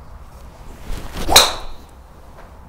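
A golf club swishes and strikes a ball with a sharp crack.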